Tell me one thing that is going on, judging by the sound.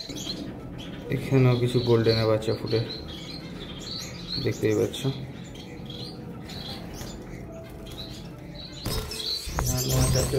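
Baby birds cheep softly in a nest.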